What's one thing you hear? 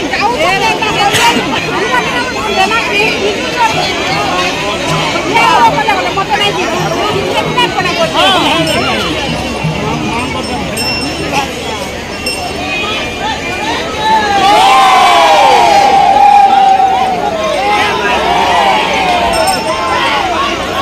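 A large crowd of men shouts and chants loudly outdoors.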